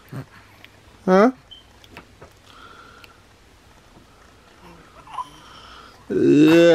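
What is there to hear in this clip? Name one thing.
A baby coos and babbles softly up close.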